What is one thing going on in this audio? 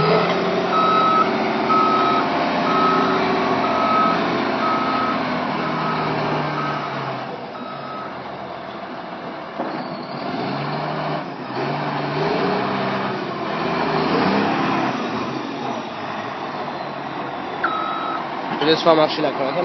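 A heavy diesel engine rumbles and idles nearby.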